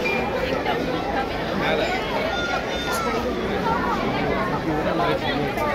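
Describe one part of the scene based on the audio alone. A crowd of men and women chatter all around outdoors.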